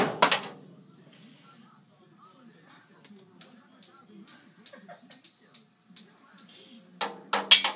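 A toddler bangs on a toy drum kit with sticks.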